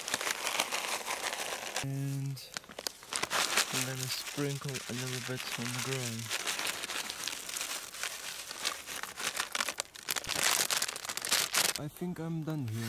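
Grain pours and patters onto dry leaves on the ground.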